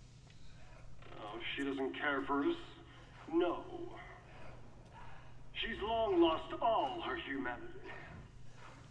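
A young man speaks calmly into a headset microphone.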